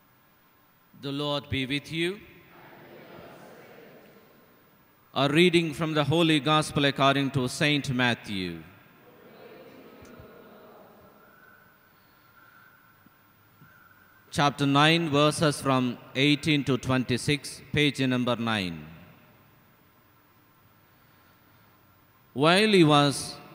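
A man reads out through a microphone in a large echoing hall, in bursts with pauses.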